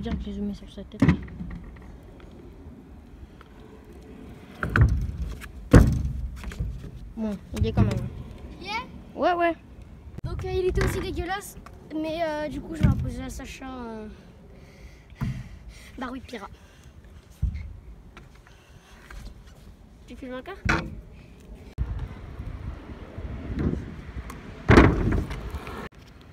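Scooter wheels roll and clatter on concrete.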